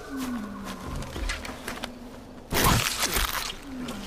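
Leaves and tall grass swish as they are brushed aside.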